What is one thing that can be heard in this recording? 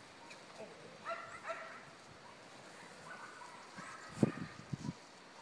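A man calls out to a dog at a distance, outdoors.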